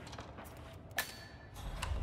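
A metal locker door bangs shut.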